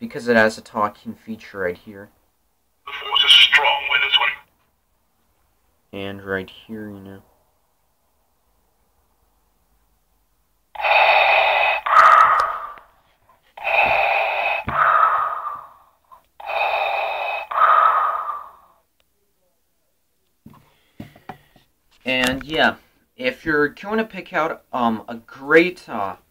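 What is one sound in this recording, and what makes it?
A plush toy plays a deep recorded voice through a small tinny speaker.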